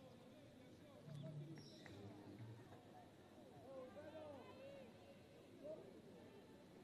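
Football players shout faintly across an open pitch.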